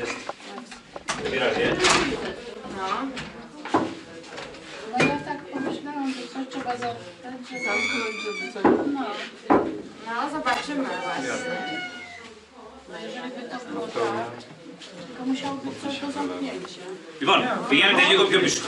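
A man speaks calmly to a small group.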